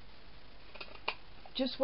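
A paper punch clicks shut as it cuts card.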